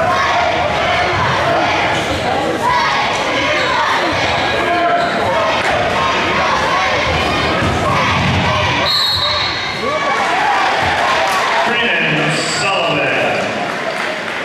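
A crowd cheers and shouts throughout in an echoing gym.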